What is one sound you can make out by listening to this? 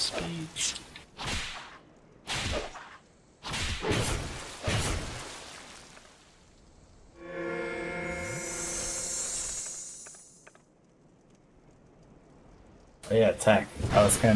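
A sword swishes through the air and strikes with sharp metallic hits.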